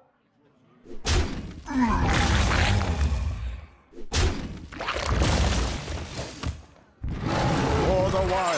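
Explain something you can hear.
Magical game effects whoosh and chime as cards are played.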